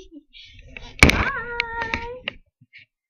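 A young woman laughs and shrieks in a drawn-out, wavering voice.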